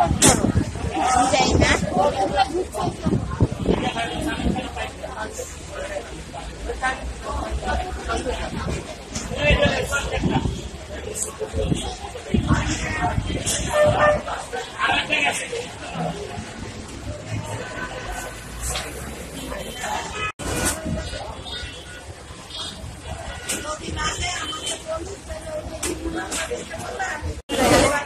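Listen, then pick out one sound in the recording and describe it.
A crowd of men and women chatter nearby in a busy, echoing room.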